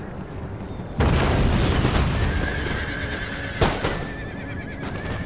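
Rockets screech overhead and crackle as they burst.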